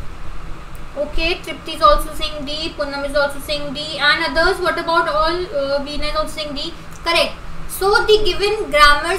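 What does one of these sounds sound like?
A young woman speaks calmly and closely into a microphone.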